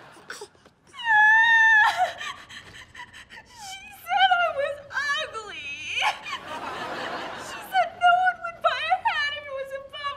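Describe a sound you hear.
A young man speaks with feeling, close by.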